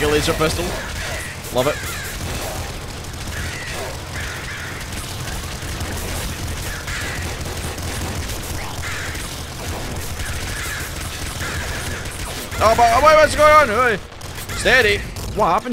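Rapid laser and gun fire crackles in a video game.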